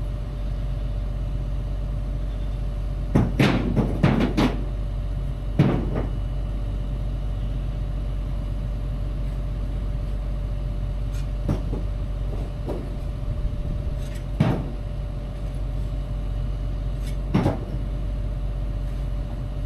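A diesel engine idles with a steady low rumble.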